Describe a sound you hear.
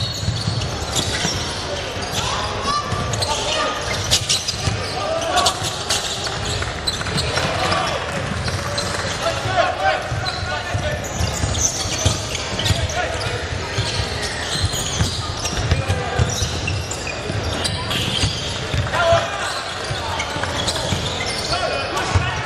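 Spectators chatter and call out in a large echoing hall.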